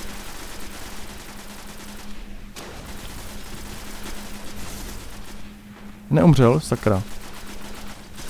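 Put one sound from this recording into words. Gunfire rattles rapidly.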